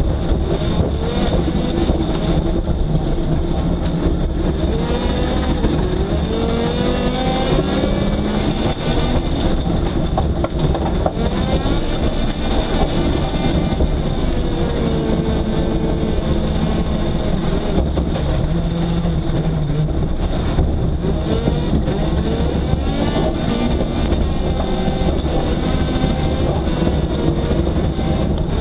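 Gravel and grit rattle under the car.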